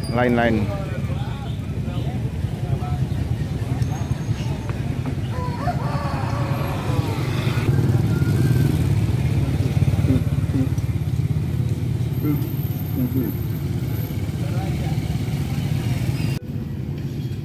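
Motorbike engines rumble as they ride past close by.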